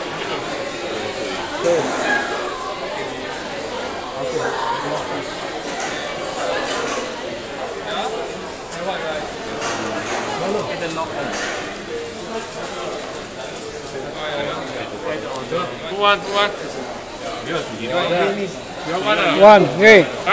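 A crowd of men and women chatter nearby, echoing in a large indoor hall.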